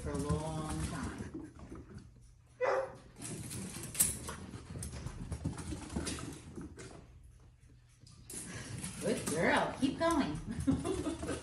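A small dog scampers across a carpeted floor.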